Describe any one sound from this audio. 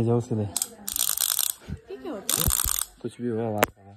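A wooden toy clapper rattles.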